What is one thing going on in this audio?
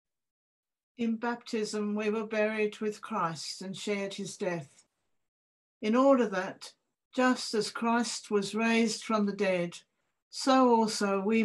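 A woman reads aloud calmly over an online call.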